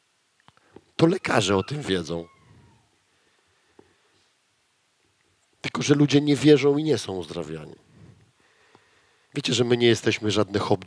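A man speaks with animation through a headset microphone.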